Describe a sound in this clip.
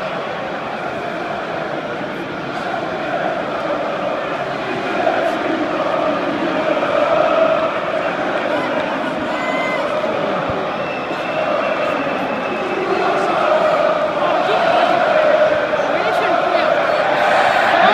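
A large football crowd chants and roars in a big stadium.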